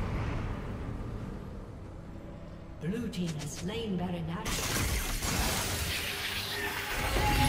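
Magic spell effects whoosh and crackle.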